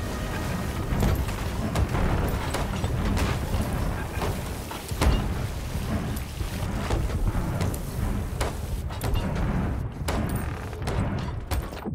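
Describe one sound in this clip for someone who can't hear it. Wooden planks knock against a hull as they are hammered in.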